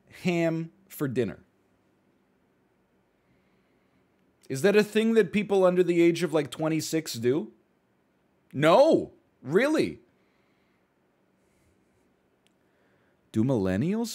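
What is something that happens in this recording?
A man speaks into a close microphone with animation, in short bursts.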